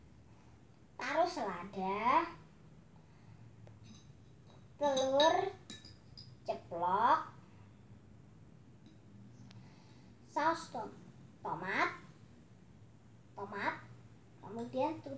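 A young girl talks close by, in short bursts.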